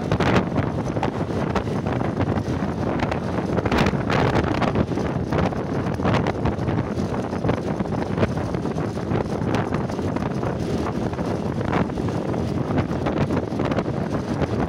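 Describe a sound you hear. A motorcycle engine hums steadily up close as it rides along a road.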